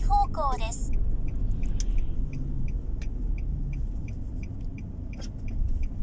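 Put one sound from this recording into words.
A turn signal ticks evenly inside a car.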